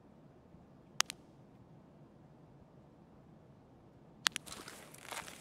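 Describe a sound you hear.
A rifle scope clicks into place.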